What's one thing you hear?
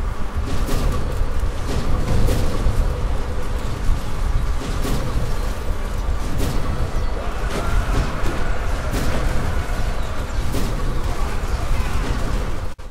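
A large army marches, with armour clanking and feet tramping.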